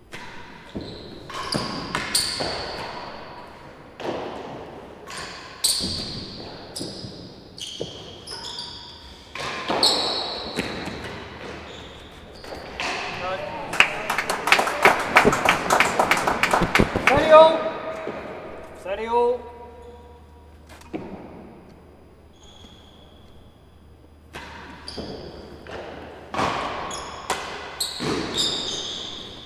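A ball thuds against the walls and floor of an echoing hall.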